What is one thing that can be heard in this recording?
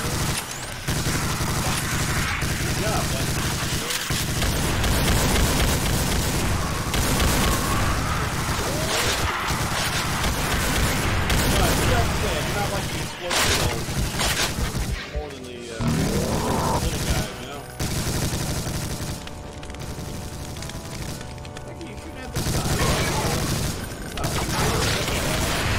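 Game gunfire blasts rapidly and loudly.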